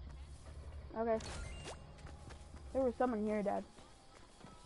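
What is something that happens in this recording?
A young woman speaks briefly with animation into a close microphone.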